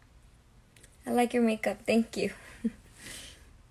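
A young woman speaks briefly, close to the microphone.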